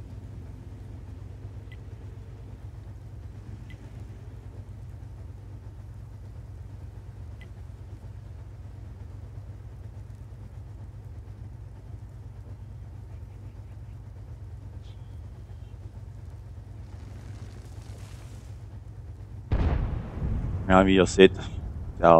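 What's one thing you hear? A tank engine idles with a low, steady rumble.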